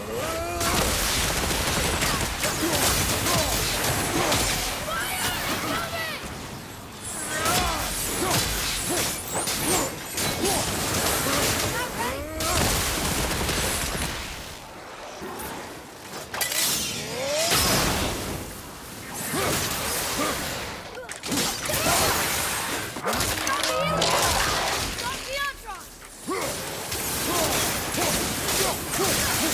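Weapons clash and strike with heavy impacts.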